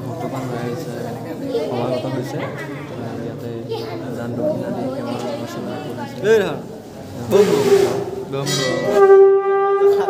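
A crowd of men and women murmur and talk nearby.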